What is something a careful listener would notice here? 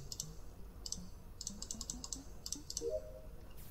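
Short electronic clicks sound as buttons are pressed in a game.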